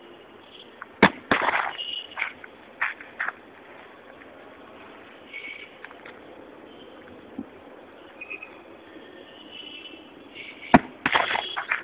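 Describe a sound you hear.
A heavy block thuds onto pavement.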